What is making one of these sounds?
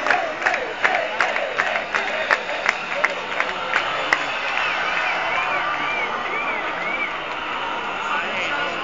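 Loud live music pounds with a fast, steady beat.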